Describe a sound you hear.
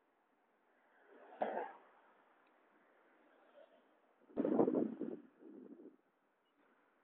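Cars drive past close by on a road.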